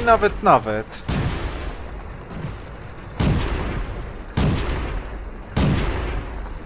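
Tank cannons fire with loud, booming blasts.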